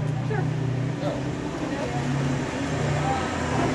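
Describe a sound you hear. A middle-aged woman speaks warmly and cheerfully close to a microphone.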